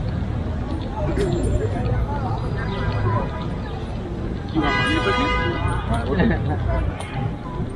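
A young woman talks casually close by while passing.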